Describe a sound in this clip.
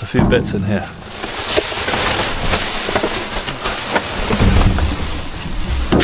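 Plastic bags rustle and crinkle as they are shifted by hand.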